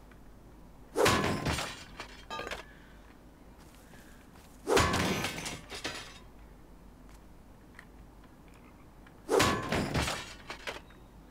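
Heavy blows clang against a metal barrel.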